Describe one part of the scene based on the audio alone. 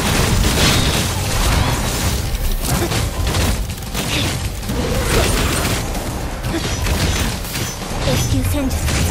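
Sword slashes and energy blasts crash and whoosh in quick succession.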